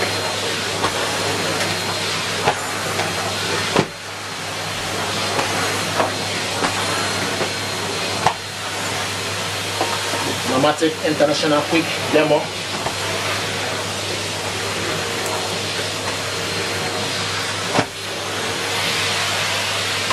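A vacuum cleaner motor whirs steadily.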